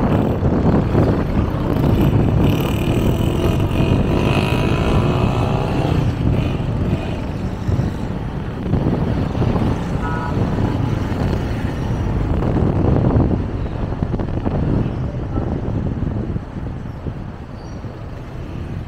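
A vehicle engine hums steadily while driving along a street.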